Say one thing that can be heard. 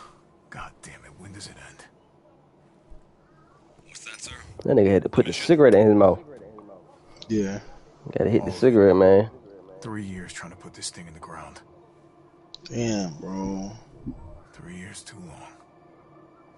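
A man speaks gruffly and quietly, close by.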